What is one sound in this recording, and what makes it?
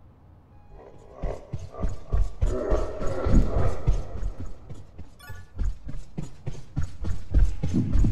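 Quick footsteps patter along a hard floor.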